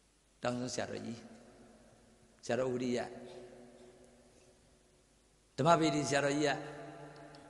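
A middle-aged man speaks slowly and with emphasis into a microphone, in short phrases with pauses, with a slight echo.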